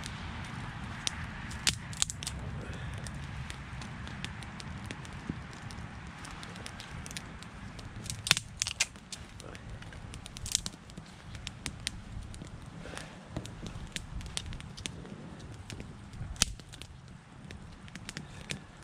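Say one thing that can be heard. A small wood fire crackles and pops.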